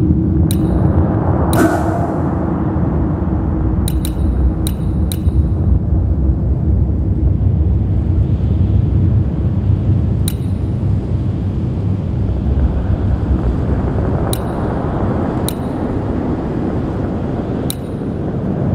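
Short menu clicks tick now and then as selections change.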